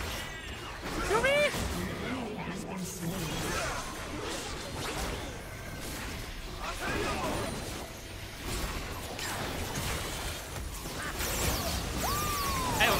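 Video game spells whoosh and blast in a busy battle.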